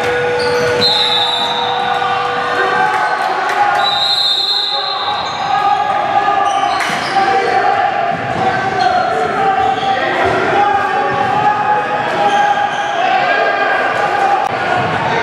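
Young players talk and call out in a large echoing gym.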